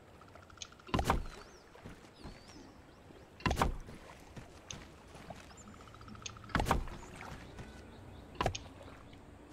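Wooden planks thud loudly into place, one at a time.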